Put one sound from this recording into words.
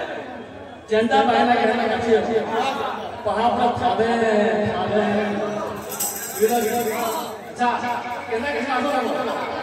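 A man sings into a microphone through a loudspeaker.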